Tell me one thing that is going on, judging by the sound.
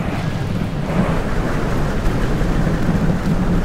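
Many horses' hooves rumble across the ground at a gallop.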